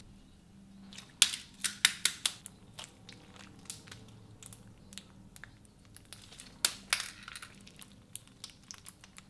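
Sticky slime squishes and crackles as hands squeeze it.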